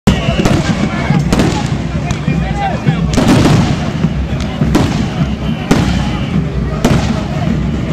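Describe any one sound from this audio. Gas canisters are fired with loud bangs that echo several times.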